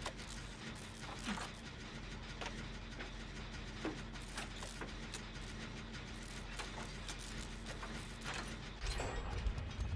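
Metal parts click and clatter as a machine is repaired.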